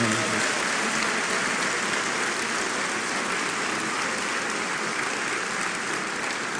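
A large crowd applauds and cheers loudly in a large hall.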